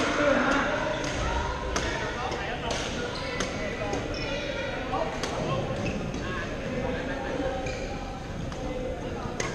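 Young men call out and chatter across an echoing hall.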